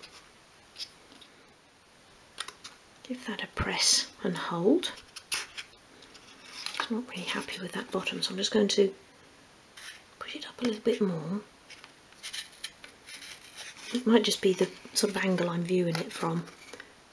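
Thin wooden pieces tap and click softly against each other.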